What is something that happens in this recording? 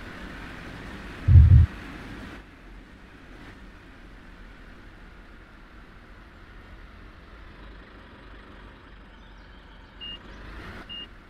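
A forklift engine hums as the forklift slows down.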